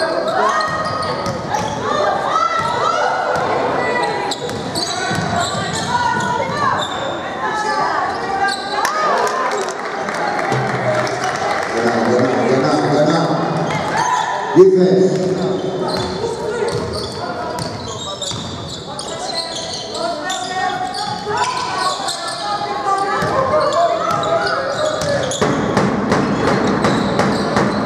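A crowd murmurs in the stands.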